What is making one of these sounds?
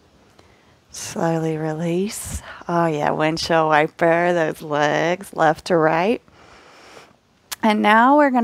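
A woman speaks calmly and slowly, close by.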